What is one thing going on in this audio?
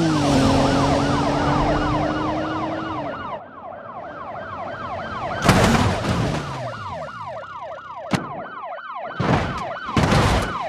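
Police sirens wail steadily.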